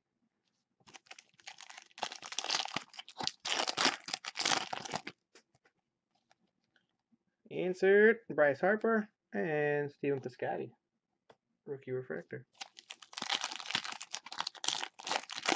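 Foil wrappers crinkle and tear as packs are opened.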